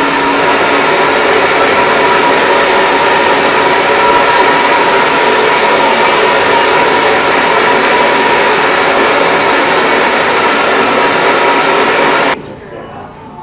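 A hair dryer blows with a loud steady roar, then stops abruptly.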